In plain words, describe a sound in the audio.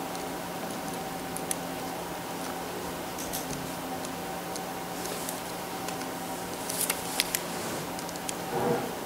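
Papers rustle and shuffle on a table.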